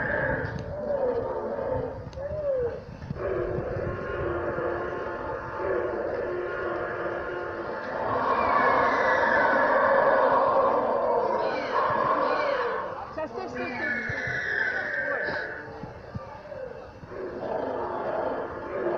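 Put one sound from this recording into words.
Children and adults chatter nearby outdoors.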